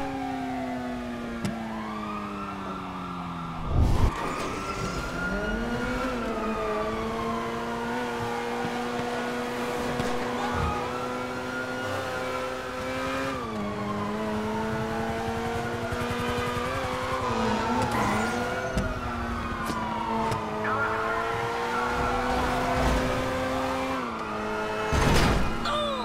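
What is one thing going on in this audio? A sports car engine revs hard and shifts up through the gears again and again.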